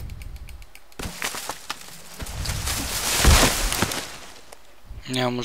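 A tree crashes down through branches with a long rushing roar.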